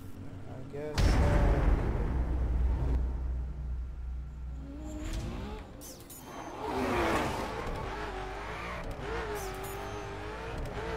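A sports car engine roars and revs.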